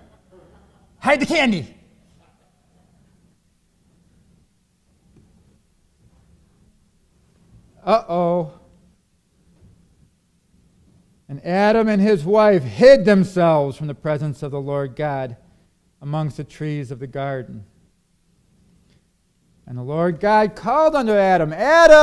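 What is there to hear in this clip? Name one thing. A man speaks slowly and earnestly into a microphone, with long pauses.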